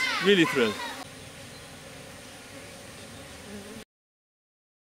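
Bees hum softly in a swarm.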